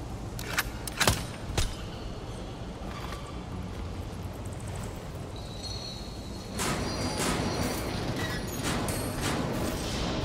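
Metal handholds clank as someone grips them and climbs.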